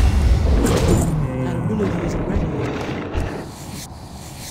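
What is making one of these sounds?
Sword blows and spell effects clash in a fast fight.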